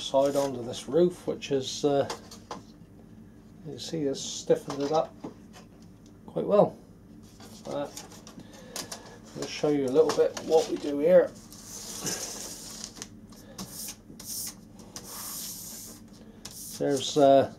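A strip of paper rustles as it is handled.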